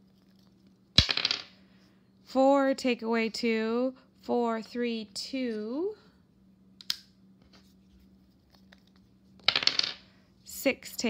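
Dice clatter and roll across a tabletop.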